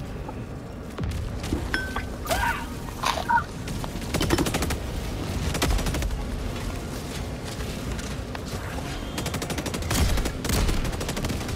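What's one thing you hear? Explosions boom deeply.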